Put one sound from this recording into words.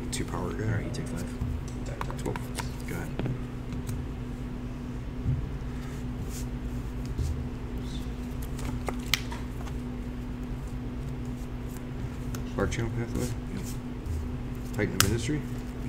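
Playing cards tap and slide on a cloth mat.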